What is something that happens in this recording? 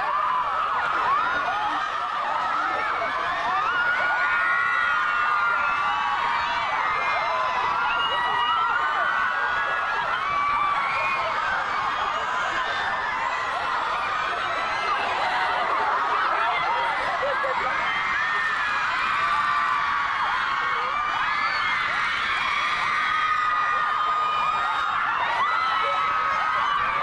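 A crowd of young women screams and shouts excitedly close by.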